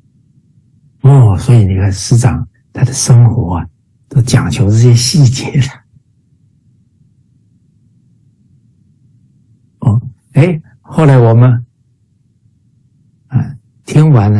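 A middle-aged man speaks cheerfully over an online call, in bursts with pauses.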